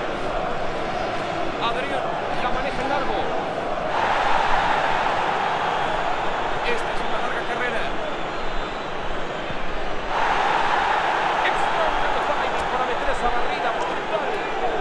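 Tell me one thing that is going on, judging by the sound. A large stadium crowd roars and cheers steadily, swelling at times.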